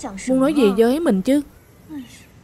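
A young woman speaks with a rising, questioning tone close by.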